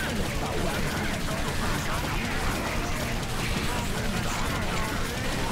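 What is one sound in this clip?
Game combat sounds clash and thud.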